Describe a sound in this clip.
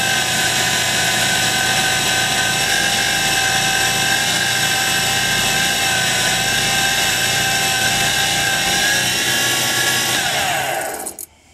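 Sandpaper rubs against spinning wood.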